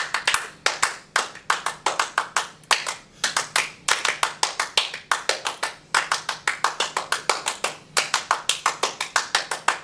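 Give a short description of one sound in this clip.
Hands clap sharply in a quick, uneven rhythm.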